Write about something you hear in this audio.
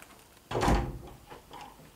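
A door handle rattles as it is pressed down.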